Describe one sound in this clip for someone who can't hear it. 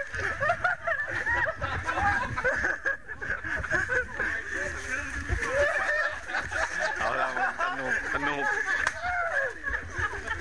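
A crowd of men and women talks excitedly outdoors.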